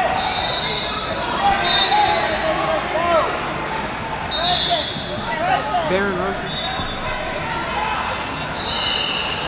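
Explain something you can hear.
Shoes squeak on a rubber mat.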